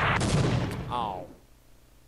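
An explosion bursts in the distance.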